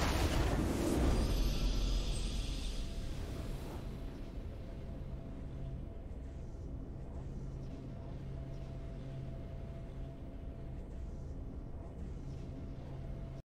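A triumphant fanfare swells for a win and then settles into soft music.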